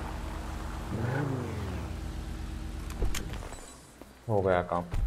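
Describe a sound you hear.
A car engine idles and revs.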